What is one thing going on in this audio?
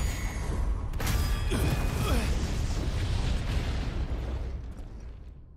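Magic explodes with a deep rumbling boom.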